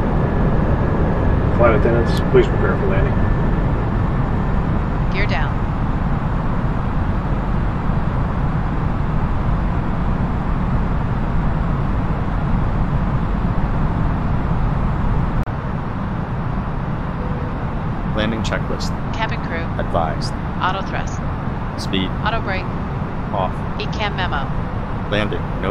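Jet engines drone with a steady low rumble.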